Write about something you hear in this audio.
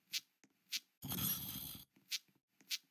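A short whooshing sound effect plays.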